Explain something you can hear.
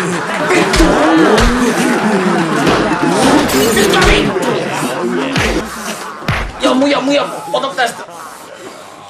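A young man shouts and screams close by.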